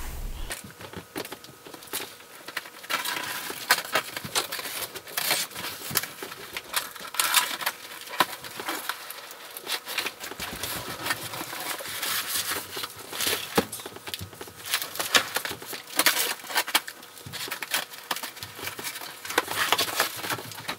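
Cardboard rustles and scrapes as a large box is handled.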